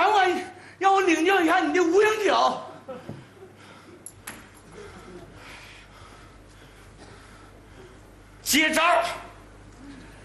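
A man shouts loudly and theatrically on a stage.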